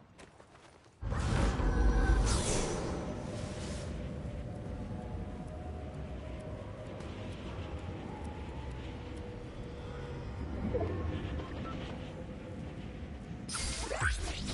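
Wind rushes steadily past a figure gliding through the air.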